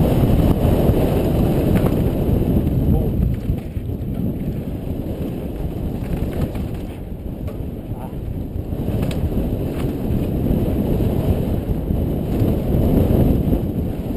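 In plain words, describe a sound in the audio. Mountain bike tyres crunch and rattle over a rocky dirt trail.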